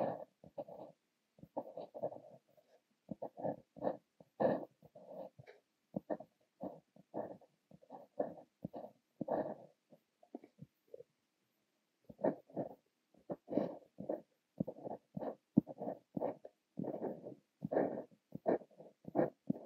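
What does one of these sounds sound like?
A fountain pen scratches across paper in short strokes, close up.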